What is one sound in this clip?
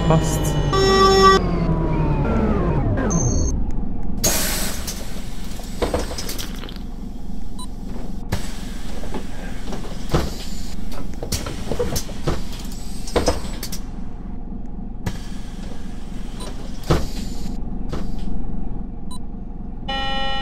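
A diesel city bus idles.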